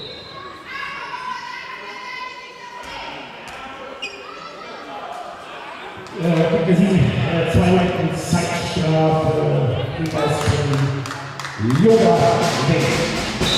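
Sneakers squeak on a wooden floor in an echoing hall.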